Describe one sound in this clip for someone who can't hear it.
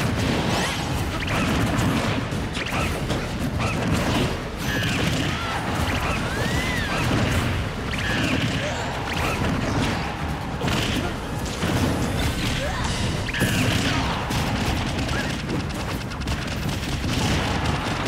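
Fighters in a video game land rapid punches and kicks with sharp hits and whooshes.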